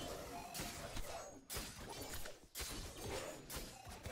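Magic blasts crackle and whoosh.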